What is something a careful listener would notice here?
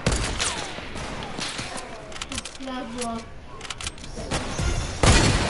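Game sound effects clatter and ring with sharp bursts.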